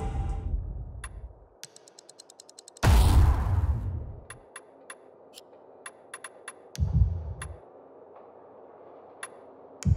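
Short interface clicks tick as menu items are selected.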